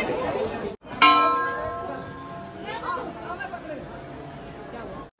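A large bell rings.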